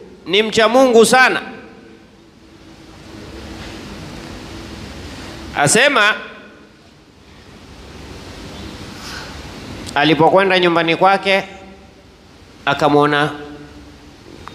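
A middle-aged man recites in a melodic, drawn-out voice into a close microphone, pausing between phrases.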